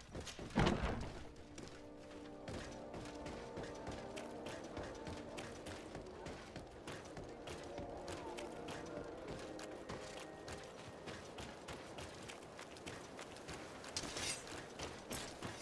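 Footsteps patter quickly on stone and dirt.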